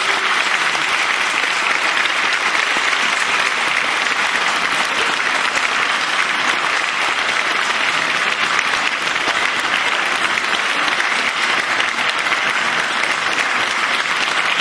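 A large audience applauds in a hall.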